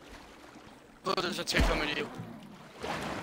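Water splashes as a swimmer plunges in.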